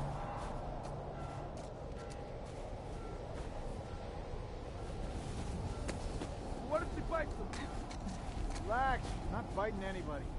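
Wind howls in a snowstorm.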